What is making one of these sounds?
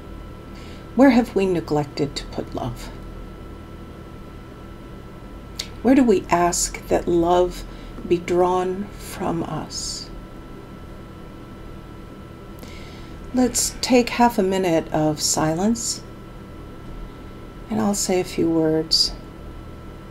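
A woman speaks calmly and slowly, close to a microphone on an online call, with long pauses.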